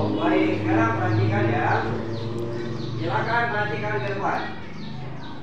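A middle-aged man speaks loudly and clearly to a room.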